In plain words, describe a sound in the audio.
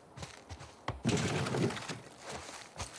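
Objects clatter and rustle as a drawer is searched.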